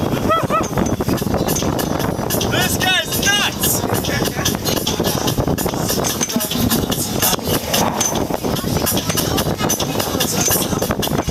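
Strong wind buffets loudly outdoors.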